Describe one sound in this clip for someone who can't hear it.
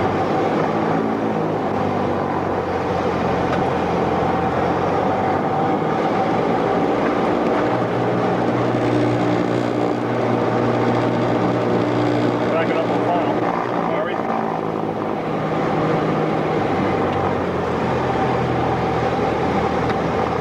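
A small plane's engine drones steadily from inside the cockpit, its pitch shifting slightly.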